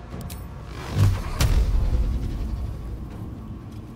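A magic blast booms and rumbles away.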